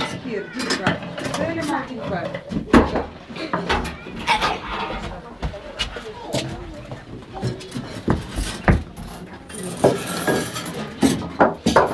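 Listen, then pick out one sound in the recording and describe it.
Wooden blocks knock together.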